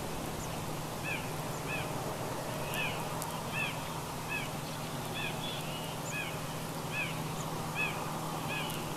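A small bird chirps repeatedly in short high calls.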